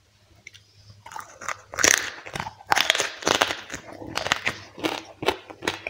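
Crispy fried meat crunches as a man bites into it.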